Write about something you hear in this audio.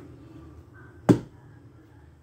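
A wooden frame knocks sharply against a hard surface.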